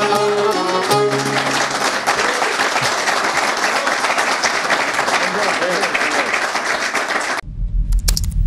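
A group of people clap and applaud.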